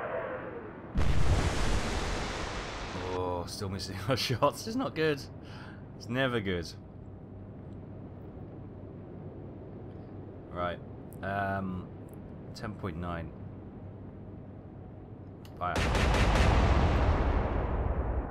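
Heavy naval guns boom with a deep rumble.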